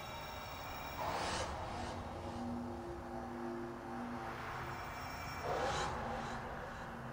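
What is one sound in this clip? A swirling magical whoosh rushes past.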